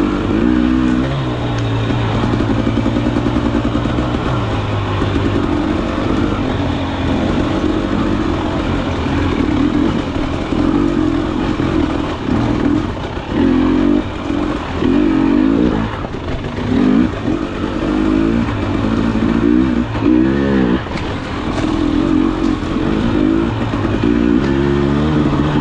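Another dirt bike engine buzzes a little way ahead.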